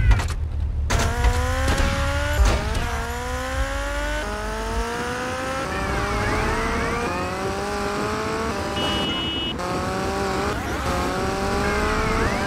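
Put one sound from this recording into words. A motorcycle engine revs and rises in pitch as it speeds along.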